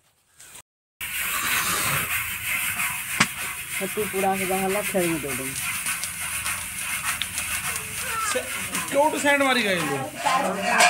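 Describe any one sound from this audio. A stiff broom scrapes and rustles grain inside a pot.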